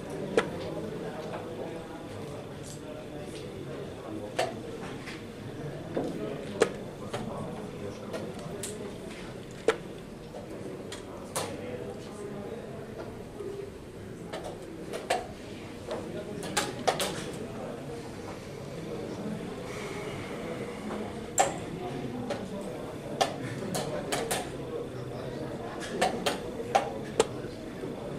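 Several adults murmur quietly in the background of a large room.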